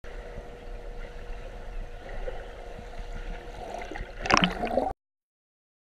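Water swirls and splashes, muffled as if heard underwater.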